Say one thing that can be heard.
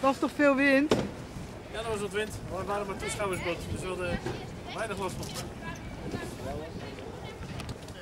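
A middle-aged man talks calmly close by, outdoors.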